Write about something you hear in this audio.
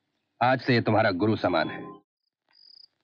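An older man speaks with concern, close by.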